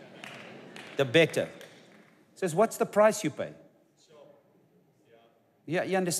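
A middle-aged man speaks with animation into a clip-on microphone, pausing between phrases.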